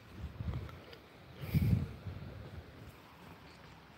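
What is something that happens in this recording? Wind gusts rumble briefly outdoors.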